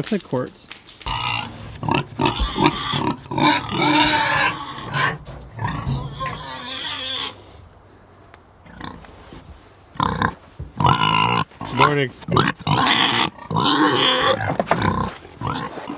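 Pigs grunt and snuffle close by.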